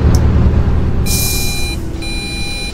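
Bus doors hiss open with a burst of air.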